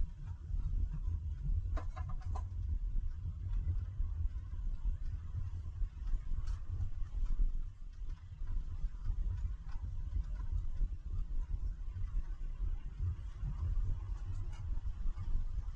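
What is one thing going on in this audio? A car drives steadily along a road with a low, constant rumble.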